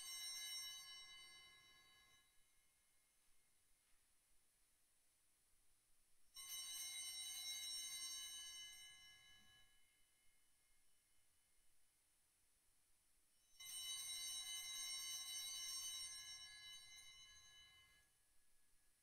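Altar bells ring out brightly three times, each ring slowly fading away in a reverberant room.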